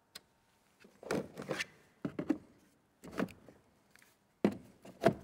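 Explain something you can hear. Plastic cases knock and rattle as they are handled.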